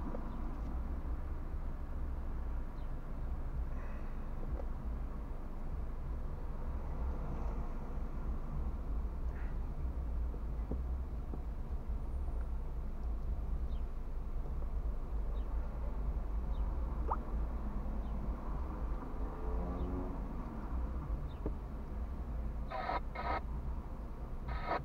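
A car engine idles with a low, steady rumble inside the car.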